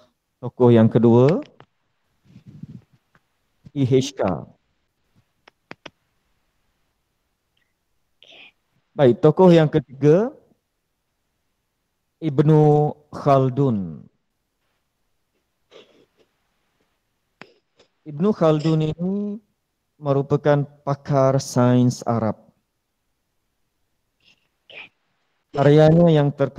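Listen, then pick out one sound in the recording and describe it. A man speaks calmly in pauses, heard through an online call.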